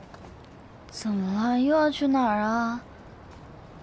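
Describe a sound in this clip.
A young woman asks a question in a surprised, whiny voice, close by.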